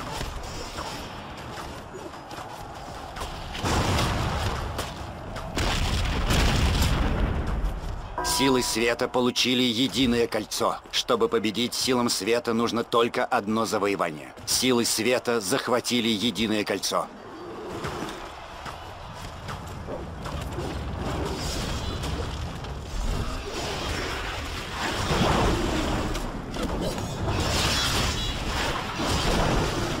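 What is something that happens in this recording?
Magic blasts crackle and whoosh in a fight.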